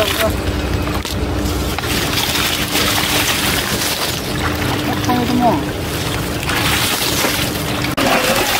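Water splashes and mud squelches as men wade through a muddy pond.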